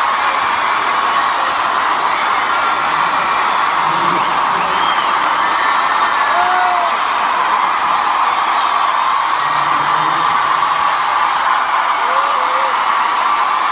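A man sings through loudspeakers.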